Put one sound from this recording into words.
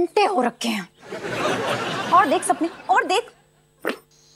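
A second young woman answers calmly, close by.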